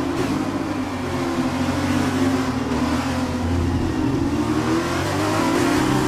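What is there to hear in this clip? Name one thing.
A racing car engine screams at high revs, its pitch wavering as it shifts and accelerates.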